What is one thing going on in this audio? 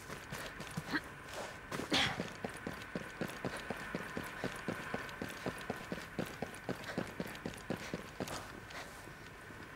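Footsteps thud quickly on hard ground as a person runs.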